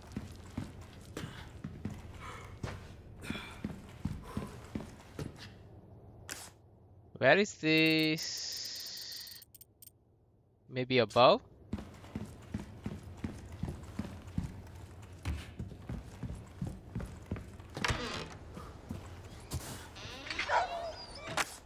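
Footsteps thud on a wooden floor indoors.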